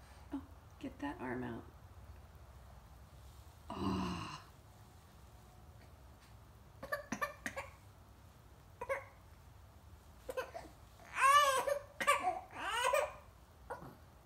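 A baby coos and squeals up close.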